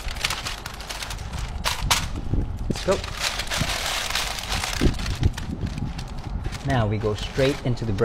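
Paper crinkles and rustles under handling.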